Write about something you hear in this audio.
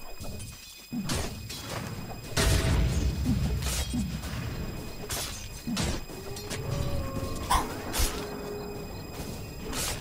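Spell effects and weapon blows clash and burst in a fast game battle.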